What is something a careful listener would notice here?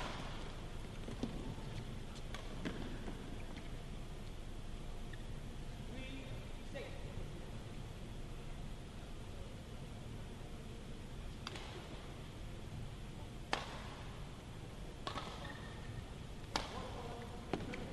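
Men talk quietly off to one side in a large echoing hall.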